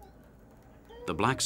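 A boy speaks calmly up close.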